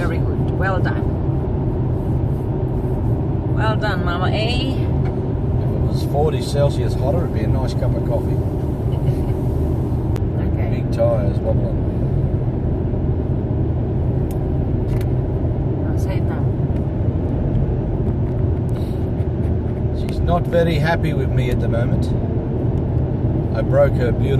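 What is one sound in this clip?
A car engine hums steadily with road rumble inside the cabin.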